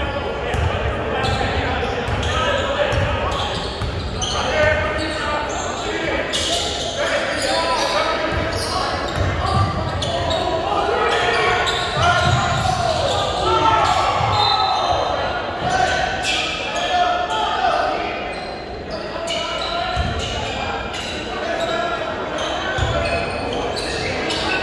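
A crowd of spectators cheers and chatters.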